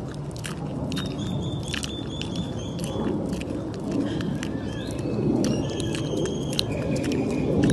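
A young tapir gives high, thin whistling squeaks.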